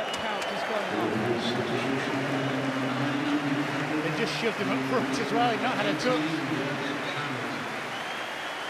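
A stadium crowd sings together loudly.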